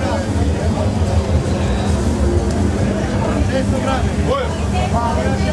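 A rotisserie motor hums steadily as spits turn.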